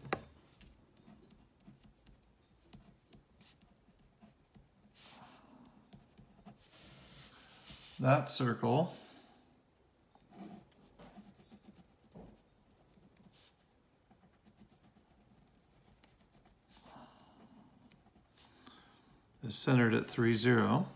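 A pen scratches across paper as someone writes and draws.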